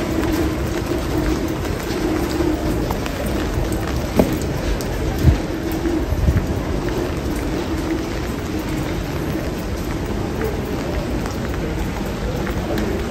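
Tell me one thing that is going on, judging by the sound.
Footsteps tread on wet paving stones.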